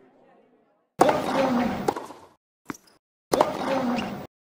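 A tennis ball is struck with a racket with sharp pops.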